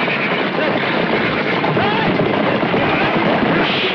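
Many horses gallop with thundering hooves.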